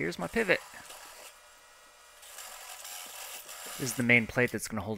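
A drill press whirs steadily.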